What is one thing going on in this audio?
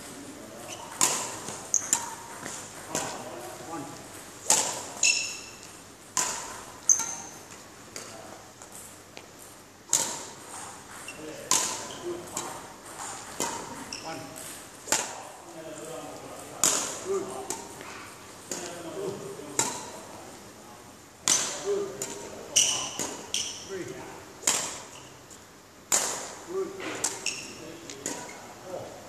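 A racket smacks a shuttlecock again and again in a large echoing hall.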